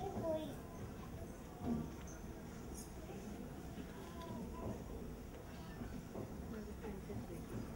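Musicians play a slow melody in a large hall.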